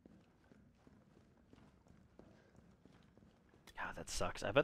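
Boots step on a tiled floor.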